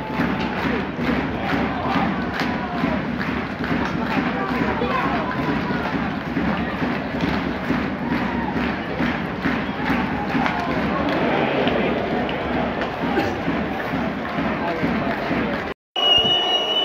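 A large crowd chants loudly in an echoing arena.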